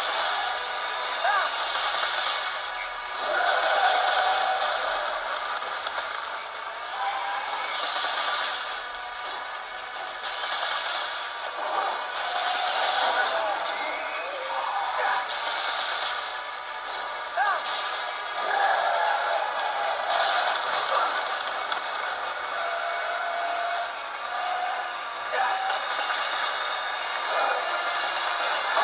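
Game music and racing sound effects play from a small handheld speaker.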